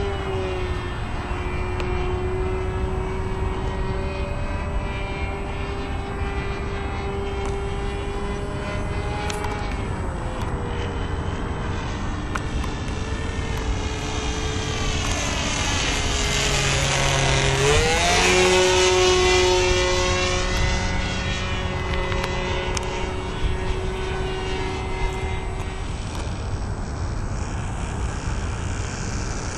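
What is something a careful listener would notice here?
A small model airplane engine buzzes steadily overhead, rising in pitch as it nears and dropping as it passes close by.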